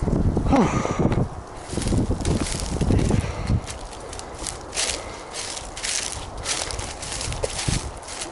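Dry stalks crunch and rustle underfoot.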